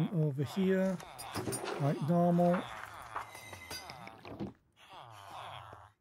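A villager in a video game mumbles nearby.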